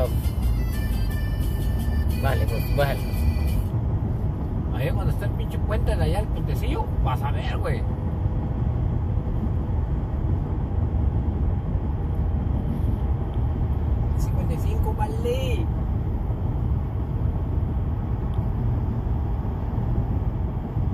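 A car's engine hums steadily as it drives along a highway.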